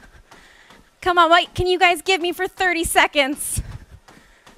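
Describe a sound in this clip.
A young woman speaks with animation through a headset microphone.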